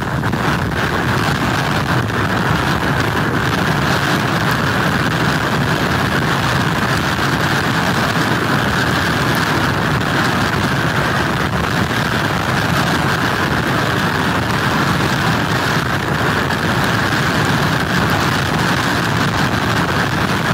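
Rough waves crash against the shore.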